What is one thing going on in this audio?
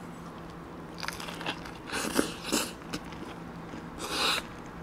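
A person bites into a burger with loud crunching and chewing.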